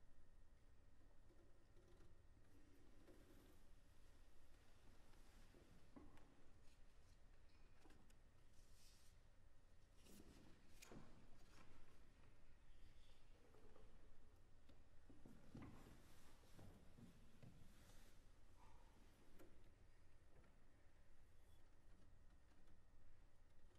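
A piano plays along.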